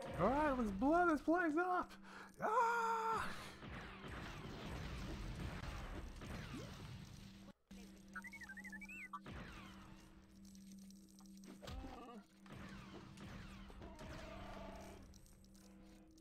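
Toy bricks blow apart in crackling explosions.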